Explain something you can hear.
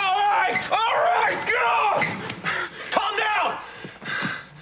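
A woman cries out in distress nearby.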